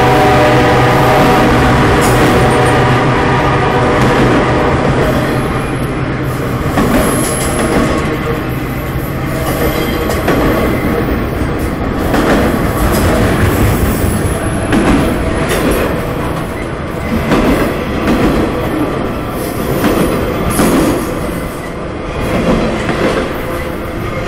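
Steel wheels clack rhythmically over rail joints.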